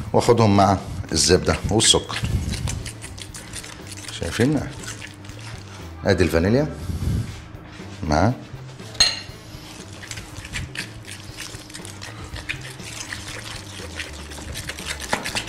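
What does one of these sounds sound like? Hands squish and mix soft dough in a glass bowl.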